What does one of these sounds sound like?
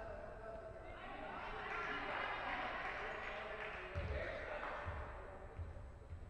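A crowd cheers loudly in an echoing hall, then quiets down.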